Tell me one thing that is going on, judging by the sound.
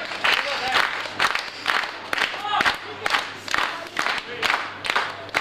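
A crowd of men and women cheers and shouts encouragement.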